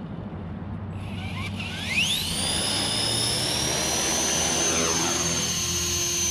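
A small electric motor whines and rises in pitch as a model helicopter's rotor spins up.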